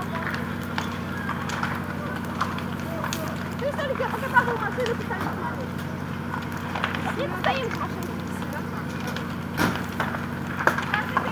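A fire crackles and pops loudly.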